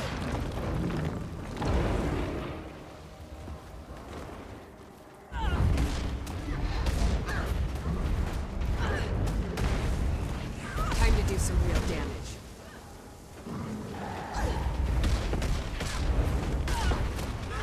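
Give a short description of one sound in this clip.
Magic blasts and sword strikes crash and boom in quick bursts.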